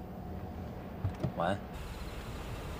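A man speaks quietly.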